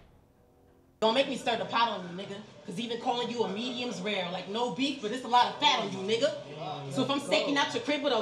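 A man raps loudly through a microphone.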